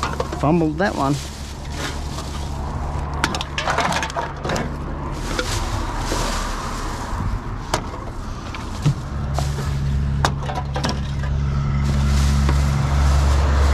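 A plastic bag rustles and crinkles as hands rummage through it.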